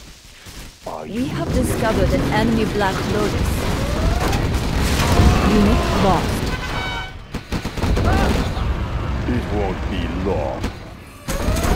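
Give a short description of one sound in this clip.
Gunfire and explosions boom in a battle.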